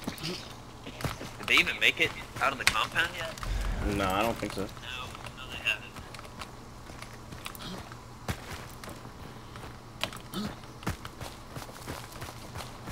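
Footsteps crunch over dirt and gravel.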